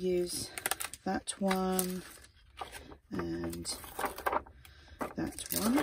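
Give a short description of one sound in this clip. A plastic packet crinkles and rustles in someone's hands.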